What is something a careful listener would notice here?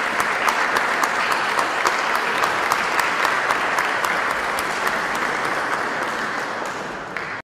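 Hard shoes stamp and tap on a floor in a quick, steady rhythm in a large echoing hall.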